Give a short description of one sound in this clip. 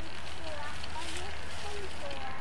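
Dry hay rustles as an elephant tosses it with its trunk.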